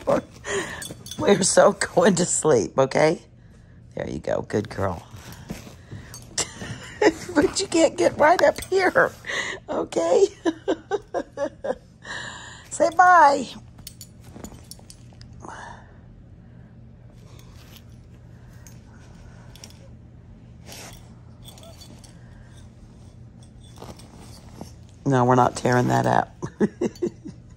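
A young dog whines and grumbles.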